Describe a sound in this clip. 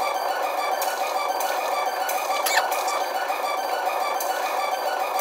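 Swords clash with sharp metallic hits.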